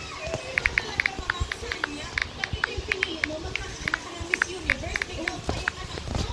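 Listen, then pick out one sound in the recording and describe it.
Keyboard taps click quickly and steadily on a phone.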